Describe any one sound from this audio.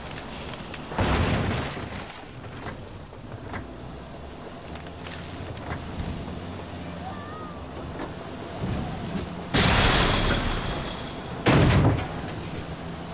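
Loud crashes burst close by.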